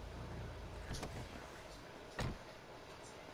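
A car door opens and shuts with a thud.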